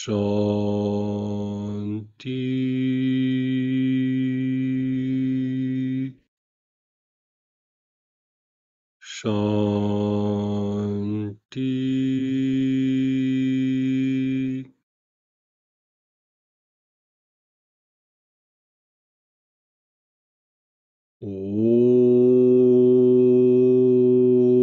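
A man chants long, deep, steady tones, heard through an online call.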